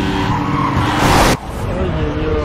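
A car crashes with a loud smash.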